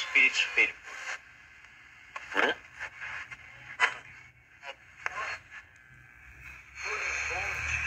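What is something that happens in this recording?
A small radio crackles and blurts short snatches of sound.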